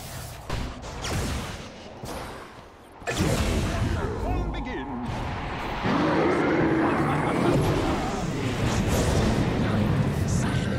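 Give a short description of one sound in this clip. Spell effects and combat sounds from a game crackle and whoosh.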